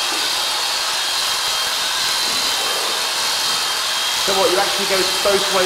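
Electric clippers buzz steadily.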